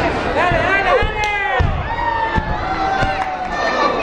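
A body slams onto a wrestling ring mat with a heavy thud.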